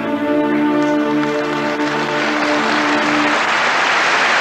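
An orchestra plays a final sustained chord that breaks off.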